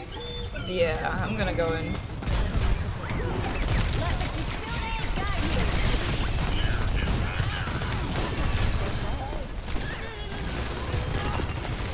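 A young woman speaks into a close microphone with animation.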